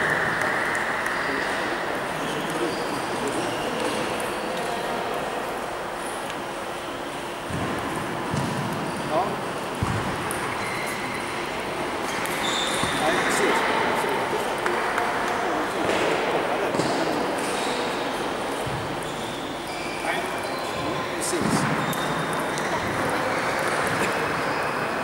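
Voices murmur and chatter in a large echoing hall.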